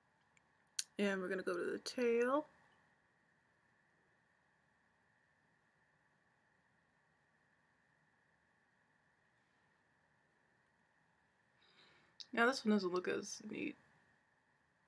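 A young woman speaks briefly and close by.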